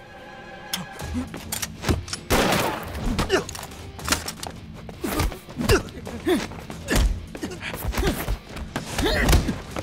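Blows and scuffling thud during a struggle between men.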